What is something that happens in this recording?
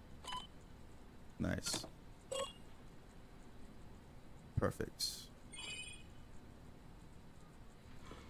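Electronic beeps and chirps sound from a computer terminal.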